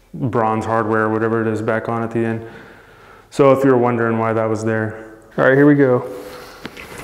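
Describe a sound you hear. A man speaks calmly into a clip-on microphone, close by.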